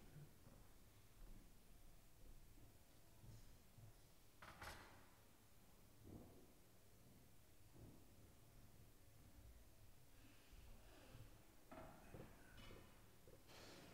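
Footsteps shuffle on a carpeted floor in a large echoing hall.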